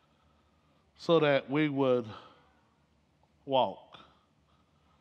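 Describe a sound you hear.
A man speaks with animation through a headset microphone, in a large echoing hall.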